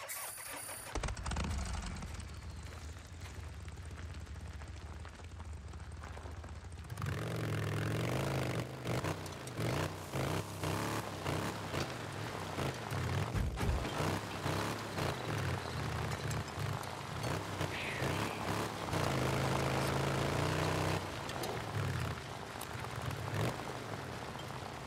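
A motorcycle engine starts, then roars and revs as the motorcycle rides along.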